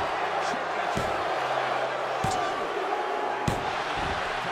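A referee slaps the mat several times in a count.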